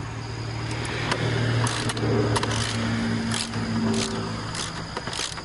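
Metal tools click and clink against metal parts.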